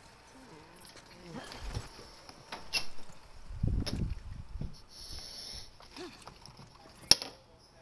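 A saddle creaks as a rider climbs onto a horse.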